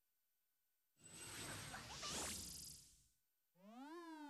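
A loud rushing whoosh sweeps past.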